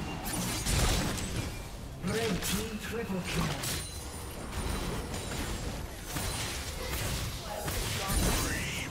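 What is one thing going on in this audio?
Game spell effects whoosh and burst in quick succession.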